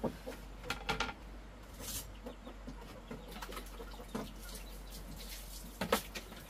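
Plastic tubs and basins knock and clatter as they are moved about.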